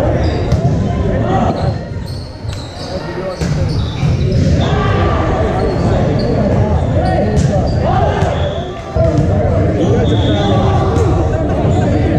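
Sneakers squeak on a wooden court.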